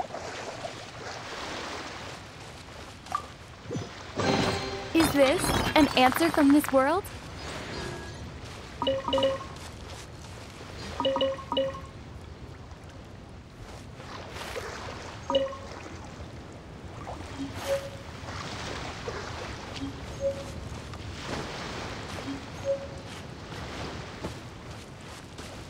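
Light footsteps crunch on sand.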